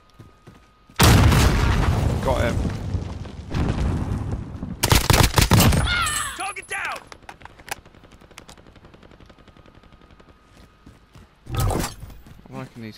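Rapid gunfire cracks in loud bursts.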